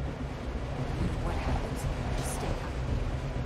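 A young woman speaks urgently and gently, close by.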